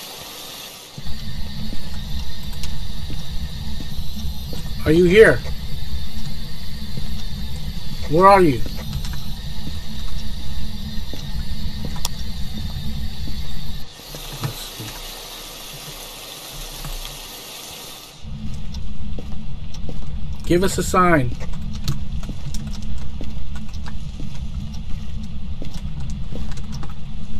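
A handheld radio hisses and crackles with loud static as it scans through stations.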